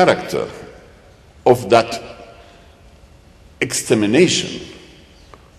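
An elderly man speaks slowly and deliberately into a microphone, with pauses between phrases.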